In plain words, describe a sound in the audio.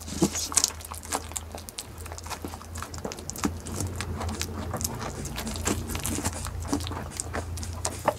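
A goat chews and crunches noisily on soft fruit close by.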